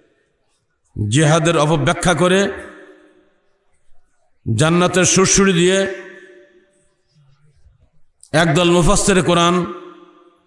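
An elderly man chants in long, drawn-out phrases into a microphone, echoing through loudspeakers.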